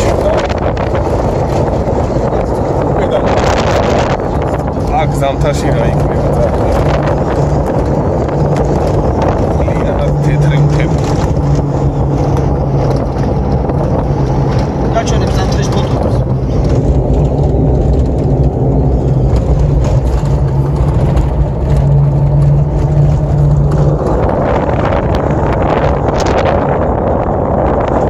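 Wind rushes through an open car window.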